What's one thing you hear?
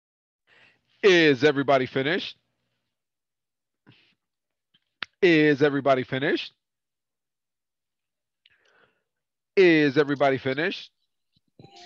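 A man speaks in short phrases over an online call through a headset microphone.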